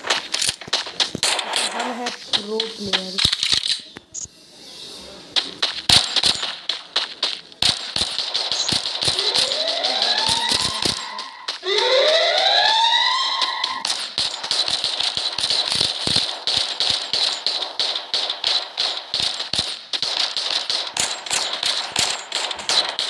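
Footsteps patter quickly as a character runs.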